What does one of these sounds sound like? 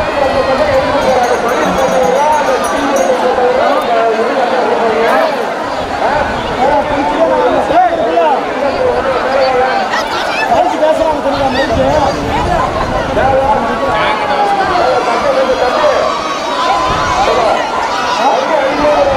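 A large crowd of men and women shouts and chatters outdoors.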